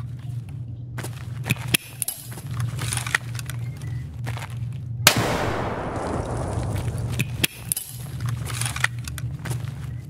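Footsteps thud on a concrete floor in an echoing space.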